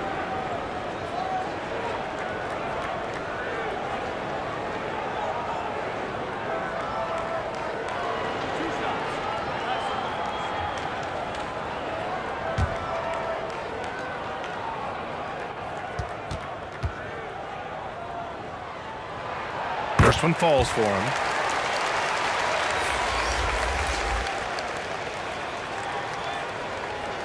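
A large crowd murmurs steadily in an echoing arena.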